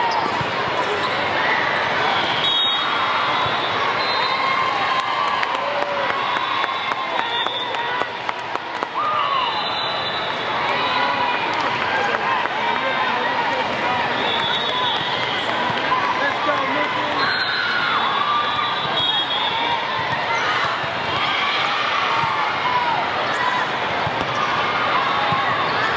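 A volleyball thuds against hands and arms.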